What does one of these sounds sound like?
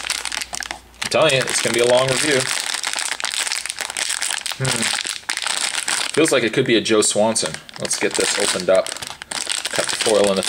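A foil wrapper crinkles and rustles in the hands.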